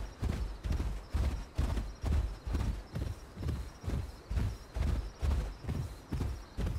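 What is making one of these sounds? Heavy paws thud quickly and steadily on soft ground.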